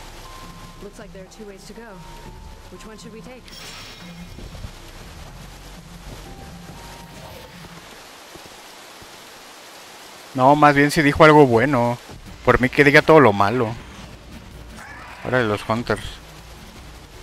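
A young man talks loudly and with animation, close to a microphone.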